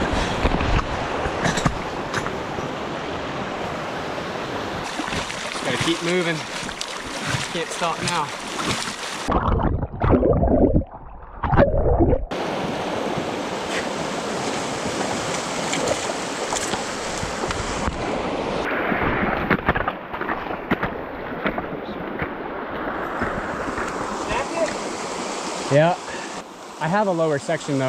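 A mountain stream rushes and splashes over rocks close by.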